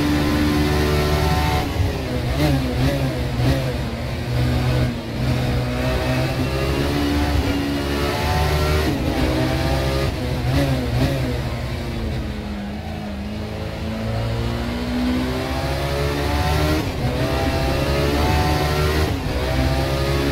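A racing car engine roars loudly, revving up and down through gear changes.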